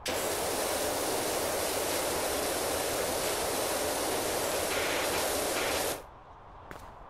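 A pressure washer sprays water in a steady hiss against a car.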